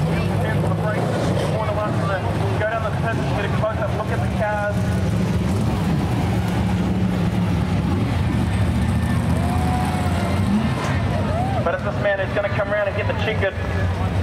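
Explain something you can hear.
Race car engines roar loudly and steadily close by.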